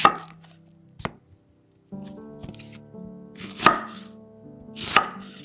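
A knife chops through an onion onto a wooden board.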